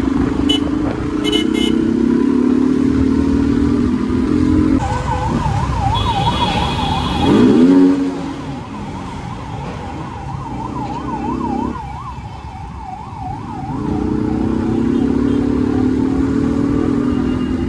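Traffic passes nearby on the road.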